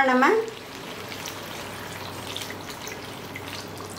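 Water pours into a pot of food.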